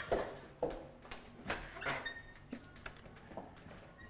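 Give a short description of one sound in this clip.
A door opens.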